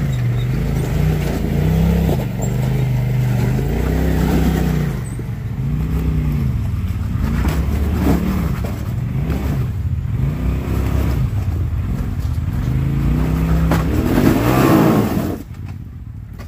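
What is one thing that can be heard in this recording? An off-road vehicle's engine revs hard, rising and falling.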